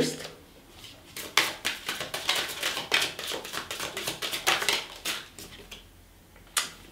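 Playing cards rustle and flick as they are shuffled.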